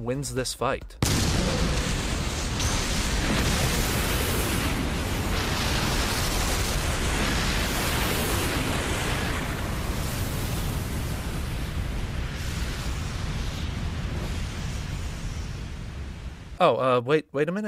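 A huge explosion booms and rumbles on in a deep roar.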